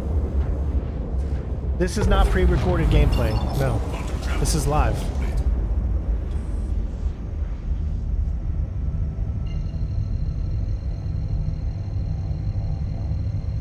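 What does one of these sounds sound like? A spaceship engine rumbles low and steadily.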